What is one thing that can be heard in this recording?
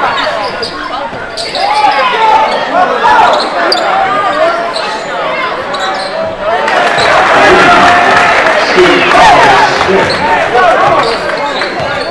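A crowd cheers and shouts in a large echoing gym, growing louder.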